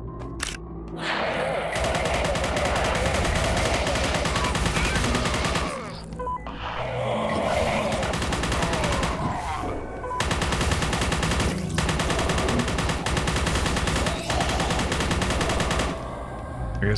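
A rapid-fire gun shoots in long, fast bursts.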